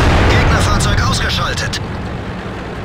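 A tank cannon fires with a loud boom that rings out and fades.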